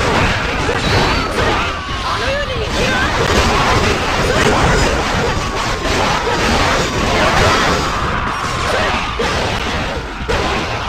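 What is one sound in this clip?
Soldiers cry out and shout amid the fighting.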